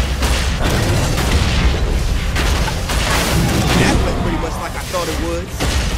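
A heavy gun fires in rapid bursts.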